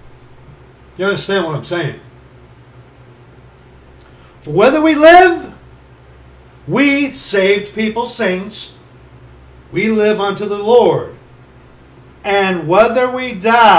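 A middle-aged man speaks with animation, close to a microphone, in short bursts.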